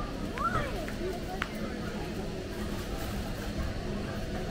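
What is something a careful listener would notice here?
A shopping cart rolls along a hard floor.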